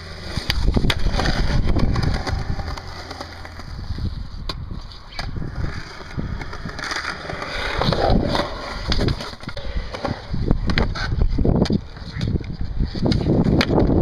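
A skateboard clacks against concrete.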